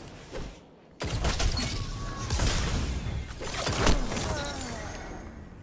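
Explosions boom in a game fight.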